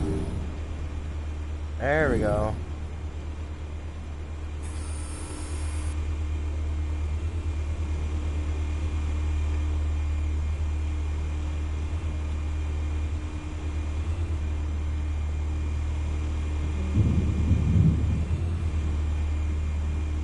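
A low ambient drone from a video game hums steadily.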